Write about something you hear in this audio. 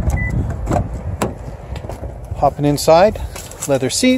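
A car door latch clicks and the door swings open.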